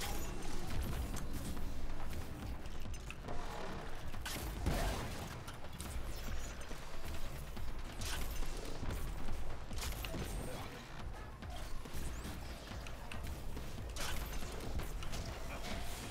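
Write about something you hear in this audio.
Gunfire and blasts ring out repeatedly from a video game.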